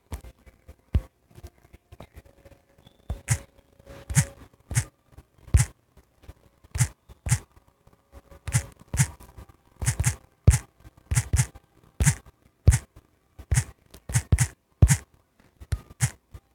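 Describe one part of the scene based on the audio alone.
Phone keyboard keys click quickly and softly as someone types.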